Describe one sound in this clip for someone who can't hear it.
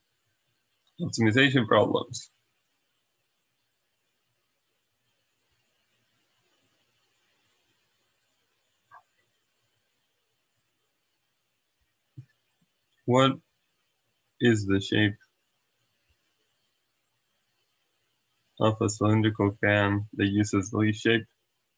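A young man speaks calmly and slowly, close to a microphone, in short bursts.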